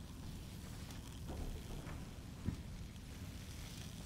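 Electric sparks crackle and fizz.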